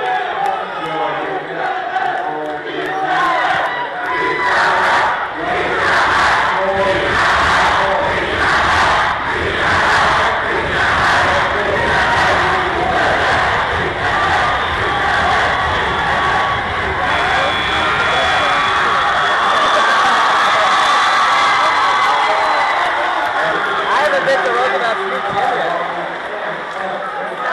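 A large crowd cheers and shouts in a big echoing gym.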